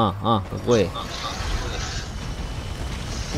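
An explosion booms and rumbles low.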